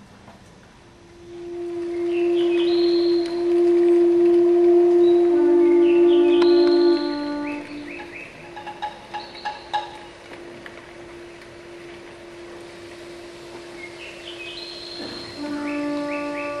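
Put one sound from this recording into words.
An orchestra plays slow, held notes that echo in a large hall.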